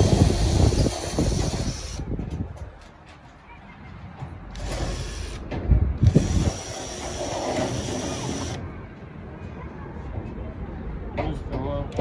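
A power drill whirs, driving screws into sheet metal.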